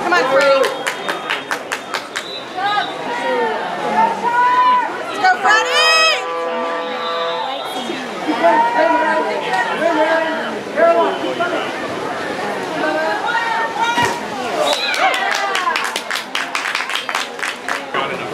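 Young people shout and call out across an outdoor pool.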